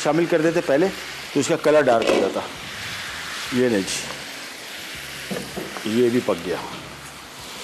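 A man talks calmly and clearly into a microphone.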